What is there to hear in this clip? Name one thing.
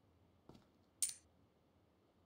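Gear rustles sharply as an item is picked up.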